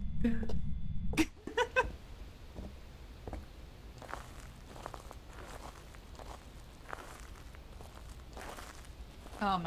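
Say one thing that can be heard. Footsteps tread slowly on cobblestones.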